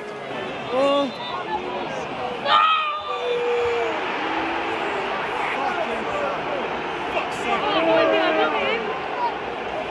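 A stadium crowd groans and roars in dismay.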